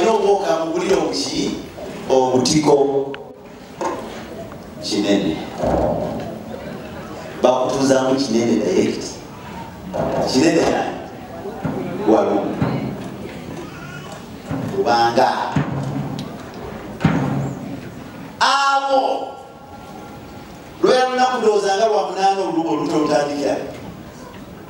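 A man preaches with animation into a microphone, heard through loudspeakers.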